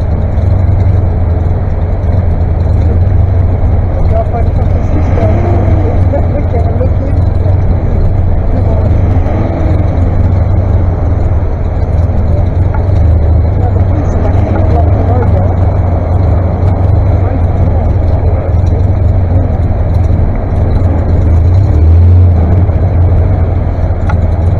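Tractor engines rev up and down as tractors drive past.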